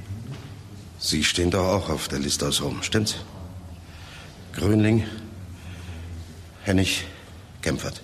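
An elderly man speaks in a low, serious voice.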